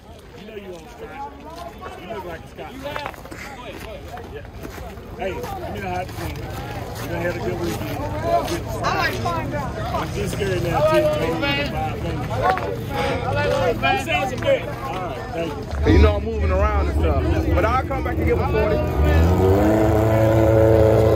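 A crowd of men and women chatters outdoors, growing louder.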